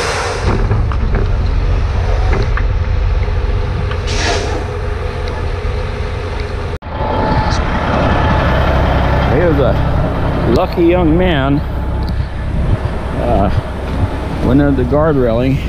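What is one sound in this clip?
A heavy truck engine idles with a deep, steady rumble.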